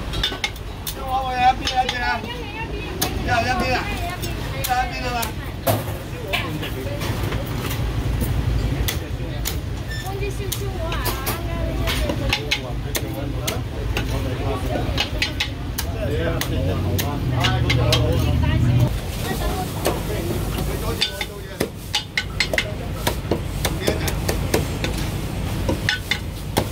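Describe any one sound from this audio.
A cleaver chops sharply and repeatedly on a wooden block.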